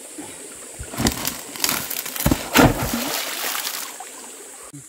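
A heavy rock tumbles down a dirt slope with loud thuds and crunching.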